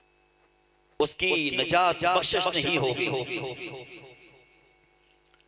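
An elderly man chants loudly into a microphone, heard through a loudspeaker with echo.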